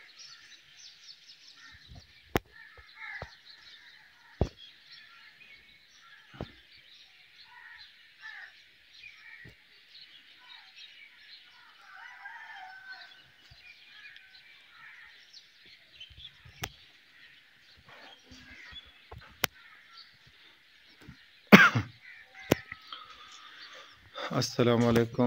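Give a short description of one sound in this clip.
Birds chirp and twitter steadily outdoors.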